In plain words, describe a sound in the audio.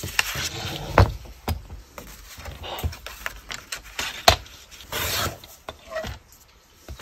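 A paper trimmer's plastic parts click and knock.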